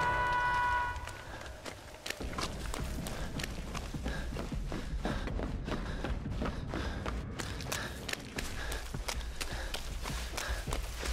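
Quick footsteps run over wooden boards and through grass.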